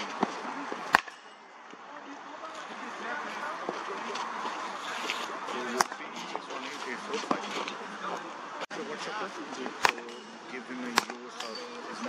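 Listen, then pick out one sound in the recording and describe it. A cricket bat strikes a ball with sharp knocks.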